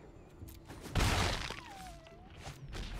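A soft whoosh sounds.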